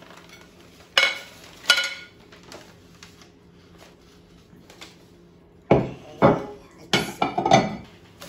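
Ceramic plates clink against each other.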